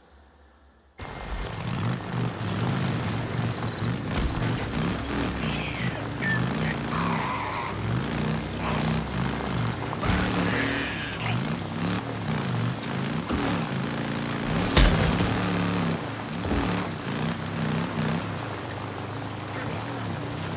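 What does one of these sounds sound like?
Tyres crunch on a dirt track.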